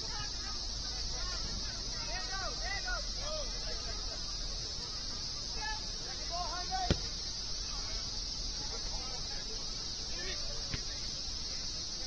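Players shout to each other across an open field in the distance.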